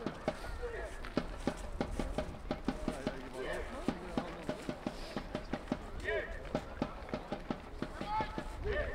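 Spectators clap their hands in a steady rhythm.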